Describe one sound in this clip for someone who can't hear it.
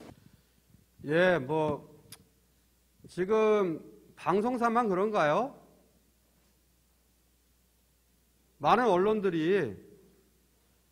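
A man speaks calmly into a microphone over a loudspeaker, with pauses between phrases.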